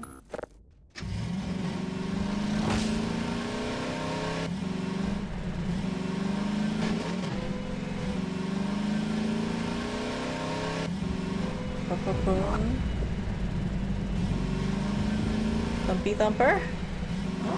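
A buggy engine hums steadily while driving.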